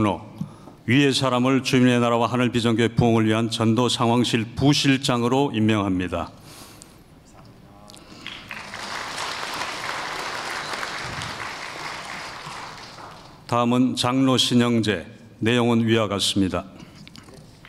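A man speaks calmly over a loudspeaker in a large echoing hall.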